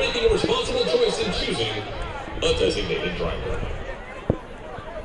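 A crowd cheers in the open-air stands, loudly at first and then fading.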